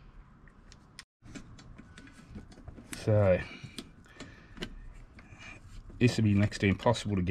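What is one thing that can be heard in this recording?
Metal parts click and tap.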